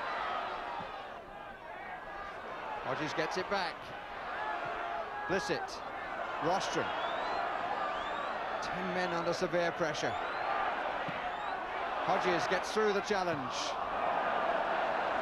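A large crowd roars and chants in an open stadium.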